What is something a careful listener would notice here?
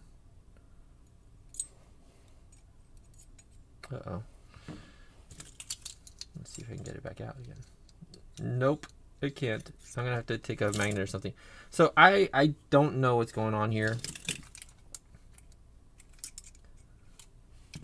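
Small metal lock parts click and scrape against each other.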